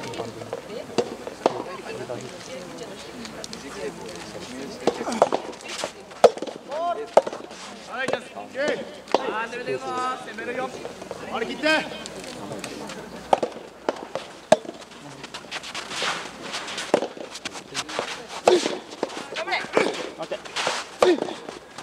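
Tennis balls are struck with a sharp pop.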